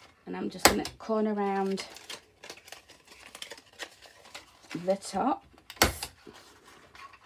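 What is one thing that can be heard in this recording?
Stiff card rustles and taps as hands handle it.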